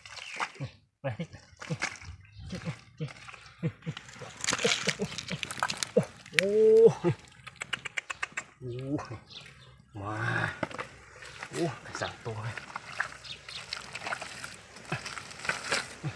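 Wet mud squelches and slaps as hands dig through it.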